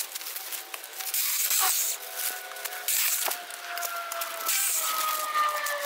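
Leafy branches rustle as they are pulled.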